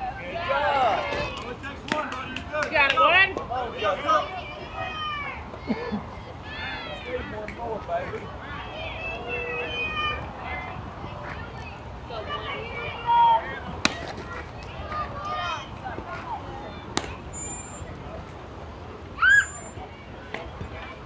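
Young players shout and cheer across an open field.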